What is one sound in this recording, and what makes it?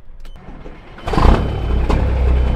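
A diesel truck engine starts with a sudden roar.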